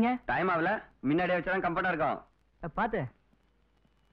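A young man speaks loudly and with animation, close by.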